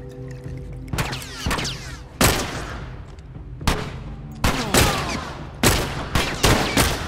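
Rifle shots bang loudly, one after another.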